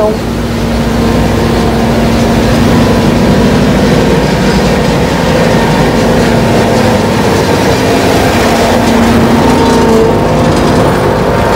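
A truck engine idles close by with a steady low hum.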